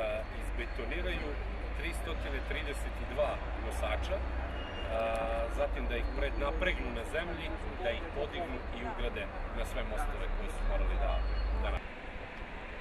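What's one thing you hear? A middle-aged man speaks calmly outdoors.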